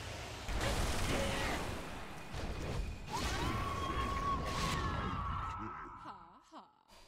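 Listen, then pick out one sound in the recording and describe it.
Game spell effects crash and whoosh loudly.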